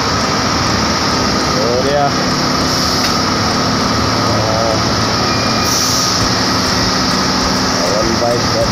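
Thin metal roof sheets clank and creak under a worker's weight.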